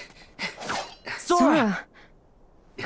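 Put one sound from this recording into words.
A young man speaks with concern.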